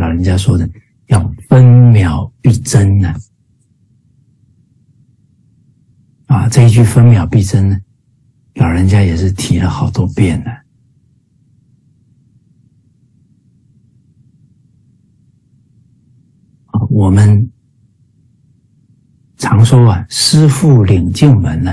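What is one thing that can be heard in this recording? A middle-aged man speaks calmly through an online call, pausing between phrases.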